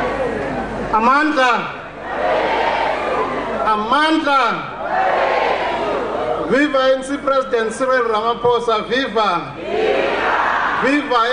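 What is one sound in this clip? A man speaks steadily through a loudspeaker, heard in a large echoing space.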